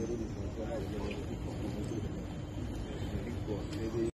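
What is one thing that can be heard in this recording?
A group of men talk together at a distance outdoors.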